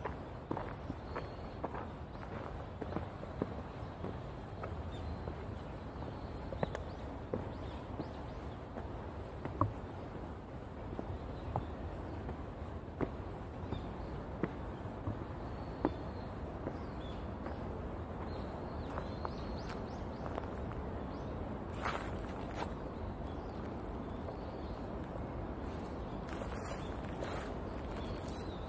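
Footsteps crunch along a gravel path.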